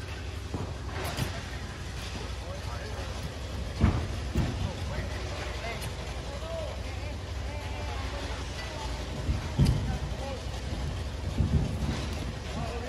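A shovel scrapes and crunches into loose gravel.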